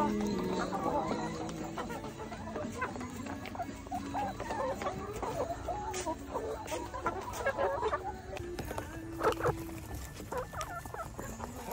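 Many hens cluck and squawk nearby.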